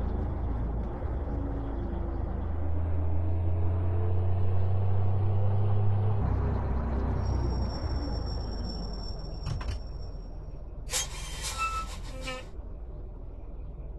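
A heavy truck engine rumbles steadily and rises in pitch as it speeds up.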